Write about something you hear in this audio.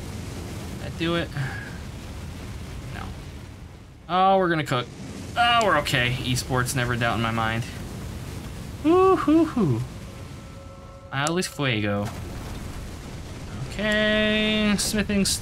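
A man speaks with animation into a microphone.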